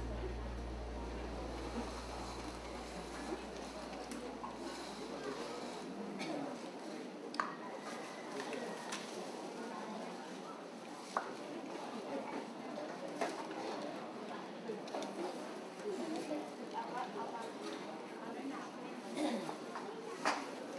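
Men and women murmur quietly nearby.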